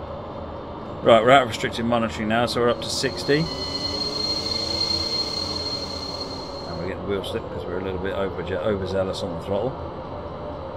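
A middle-aged man talks casually into a microphone.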